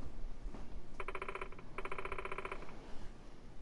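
A young girl speaks softly through a speaker.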